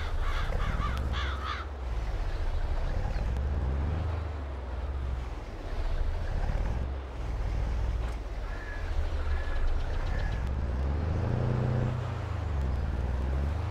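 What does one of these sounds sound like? Trailer wheels rattle over gravel.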